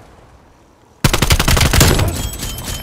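A rifle fires a rapid burst of automatic shots.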